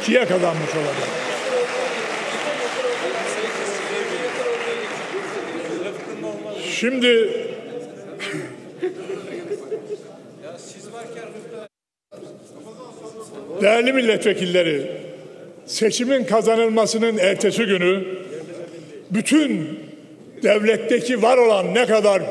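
An elderly man speaks with animation into a microphone in a large echoing hall.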